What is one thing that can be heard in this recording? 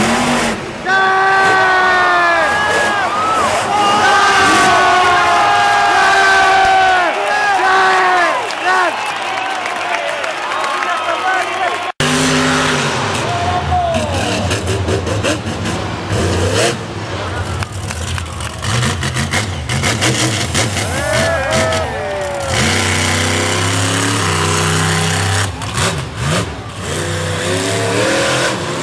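A monster truck engine roars and revs loudly.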